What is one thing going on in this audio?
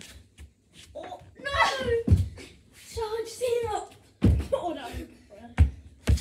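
A young child talks and squeals excitedly nearby.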